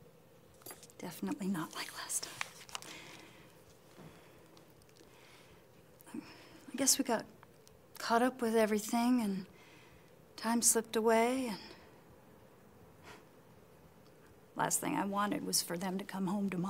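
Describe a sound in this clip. A middle-aged woman speaks calmly and emotionally nearby.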